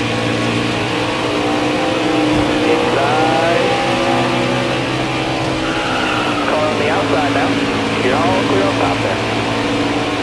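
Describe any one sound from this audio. Racing truck engines roar steadily at high speed.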